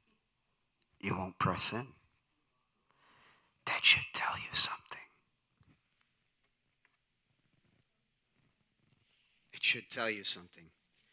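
A man speaks calmly in short phrases into a microphone.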